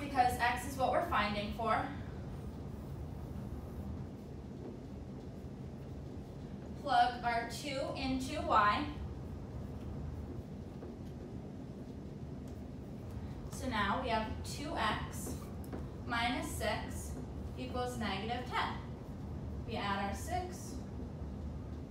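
A young woman explains calmly, close by, in short phrases with pauses.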